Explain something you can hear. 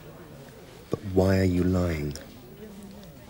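An elderly man groans in a low voice close by.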